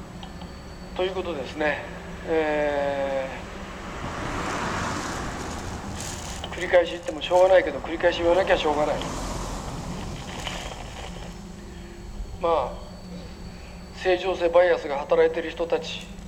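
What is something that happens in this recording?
A man speaks and sings expressively into a microphone.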